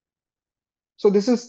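A man speaks calmly into a microphone, heard as on an online call.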